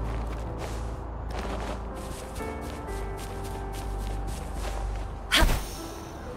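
Footsteps rustle quickly through grass.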